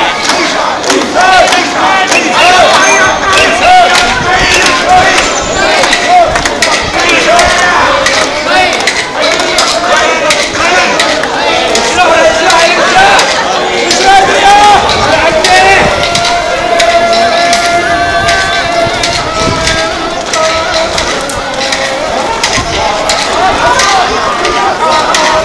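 A large crowd of men and women chant and shout rhythmically outdoors.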